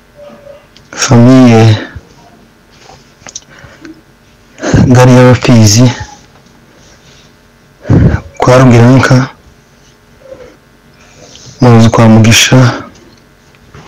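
A man speaks loudly in short, forceful phrases.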